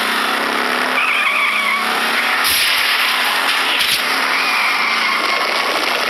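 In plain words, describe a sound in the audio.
Car tyres skid on the track.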